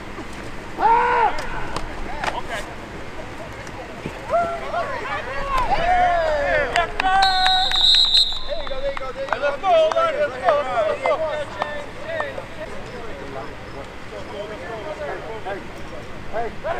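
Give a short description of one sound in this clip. Men shout and cheer from the sideline outdoors.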